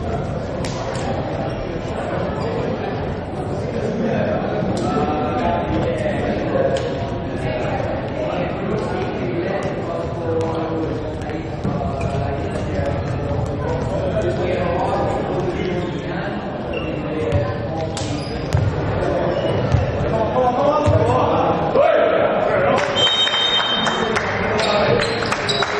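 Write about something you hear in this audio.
Young men shout and call to each other in an echoing sports hall.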